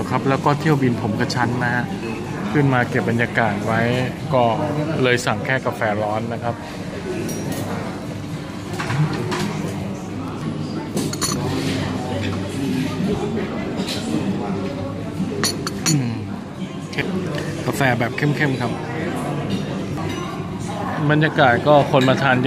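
Men and women chat in the background of a large room.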